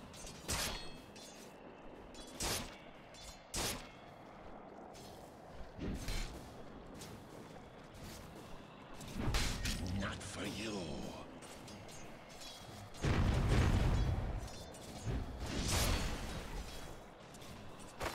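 Game weapons clash and magic effects whoosh in a fantasy battle.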